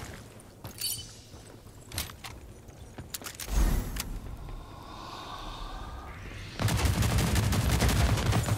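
Footsteps run on a hard metal floor.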